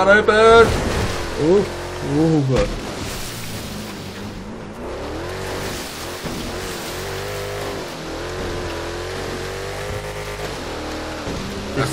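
Water splashes and sprays as a truck drives through it.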